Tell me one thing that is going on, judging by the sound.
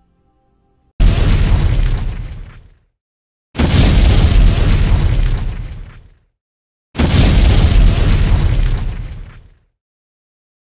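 Explosions boom loudly three times.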